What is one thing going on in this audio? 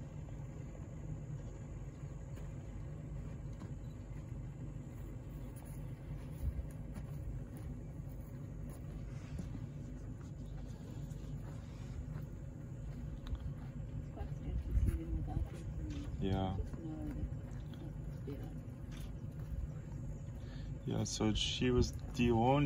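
A rhino tears and crunches grass while grazing close by.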